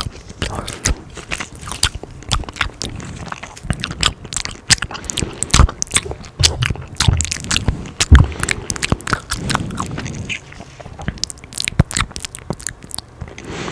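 A young man whispers softly and closely into a microphone.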